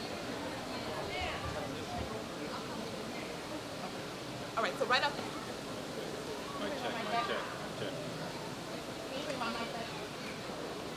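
A young man speaks into a microphone outdoors.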